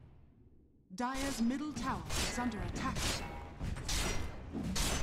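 Spell blasts and weapon strikes burst in a game fight.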